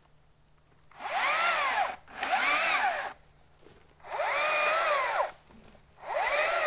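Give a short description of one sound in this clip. A chainsaw revs up in loud bursts, its pitch rising and falling.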